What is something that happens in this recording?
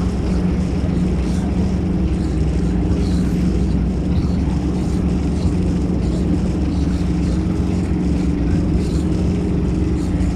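Water churns and rushes behind a moving boat.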